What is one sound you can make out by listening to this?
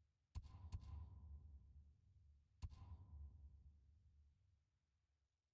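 A game menu gives short chiming clicks with a low boom.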